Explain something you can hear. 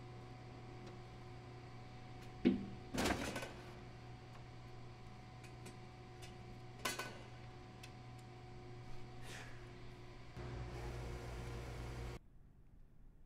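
A drink vending machine hums.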